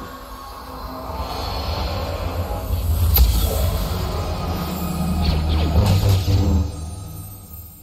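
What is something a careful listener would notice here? A deep, rushing whoosh swells and rumbles, then cuts off.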